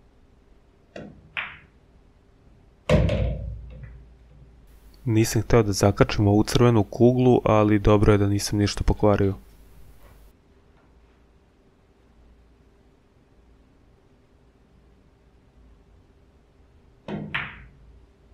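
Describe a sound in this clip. A cue stick strikes a ball sharply.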